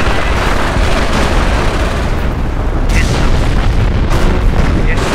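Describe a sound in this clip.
Explosions boom and rumble with heavy battle noise.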